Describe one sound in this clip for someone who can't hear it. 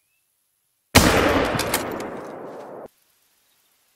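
A rifle shot booms and echoes away.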